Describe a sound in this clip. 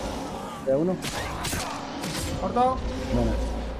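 Swords clash with sharp metallic hits.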